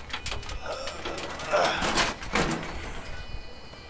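A wooden fence cracks and splinters as it is broken.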